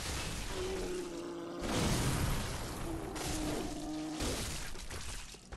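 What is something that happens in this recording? Weapons swing and strike in a video game fight.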